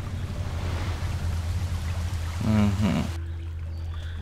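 A waterfall rushes and splashes steadily.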